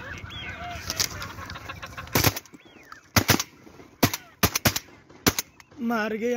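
Shotgun blasts ring out outdoors, one after another.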